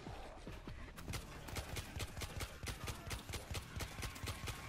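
Rapid gunshots crack close by.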